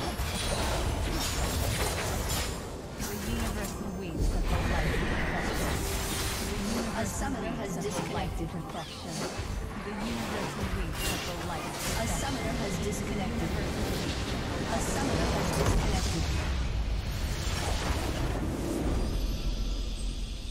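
Game spells and blasts crackle and boom in a fight.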